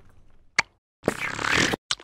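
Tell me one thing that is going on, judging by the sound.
A small cartoon creature squeals in a high, excited voice.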